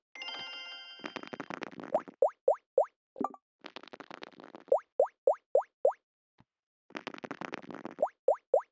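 Dice rattle as they roll.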